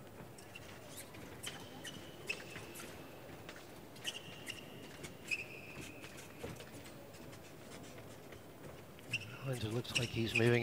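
Shoes squeak sharply on a smooth floor.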